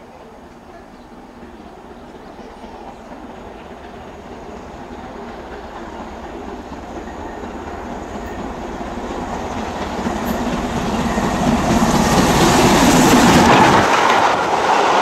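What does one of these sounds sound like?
A steam locomotive approaches, chuffing louder and louder, and rushes past close by.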